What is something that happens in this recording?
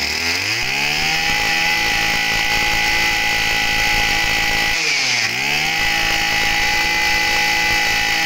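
A small two-stroke engine revs up loudly, drops briefly and revs up again.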